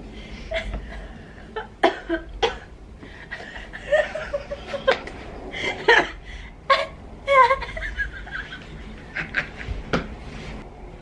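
Two young women laugh loudly together close by.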